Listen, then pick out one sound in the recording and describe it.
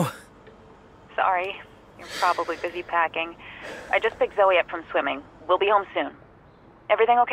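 A woman talks through a telephone.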